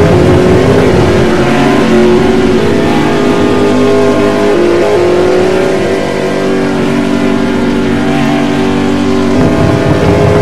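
Racing car engines roar at high speed.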